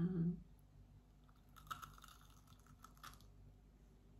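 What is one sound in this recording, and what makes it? A woman makes soft crunching sounds while eating.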